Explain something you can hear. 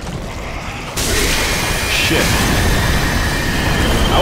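A monster lets out a loud roar.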